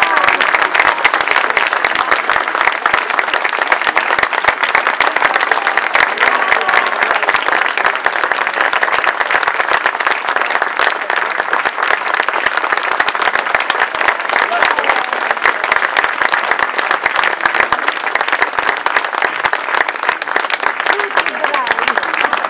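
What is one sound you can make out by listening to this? An audience applauds loudly outdoors.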